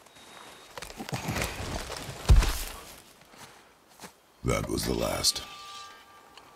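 A heavy axe swings with a whoosh and a thud.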